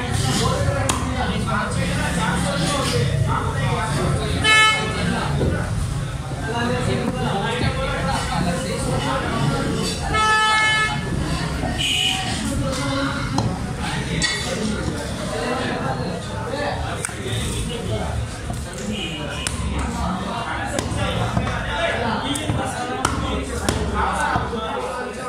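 A cleaver chops on a wooden block.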